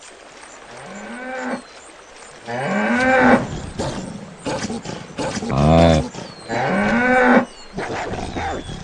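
Deer bellow loudly in rising and falling calls.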